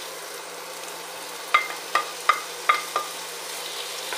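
Pieces of meat are scraped off a plate into a pot with soft thuds.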